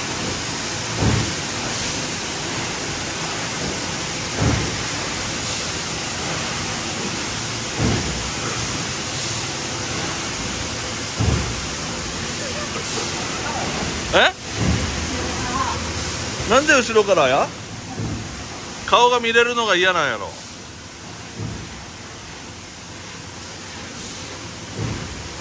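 A machine press thumps at a regular pace.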